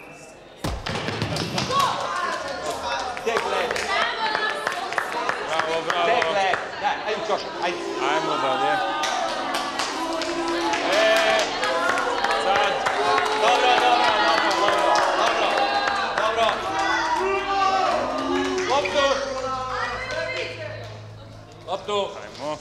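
A group of teenagers talks and shouts in an echoing hall.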